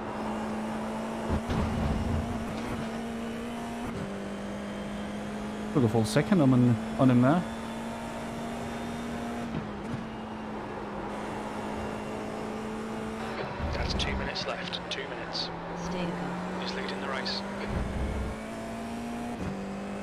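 A racing car engine drones steadily, shifting pitch through the gears.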